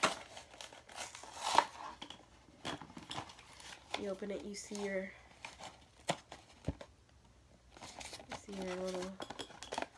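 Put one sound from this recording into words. Cardboard packaging rustles and tears.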